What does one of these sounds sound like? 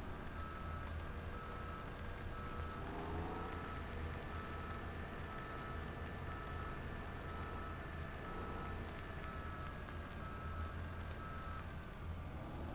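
A reversing alarm beeps at an even pace, then stops.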